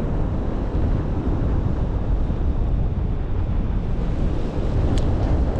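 Strong wind rushes and buffets past a microphone outdoors.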